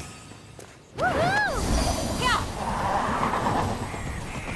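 A fiery magical whoosh bursts loudly.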